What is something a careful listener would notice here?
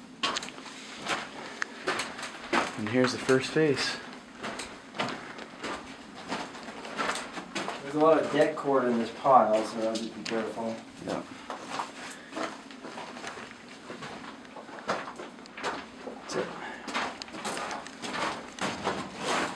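Footsteps crunch on gravel in an echoing tunnel.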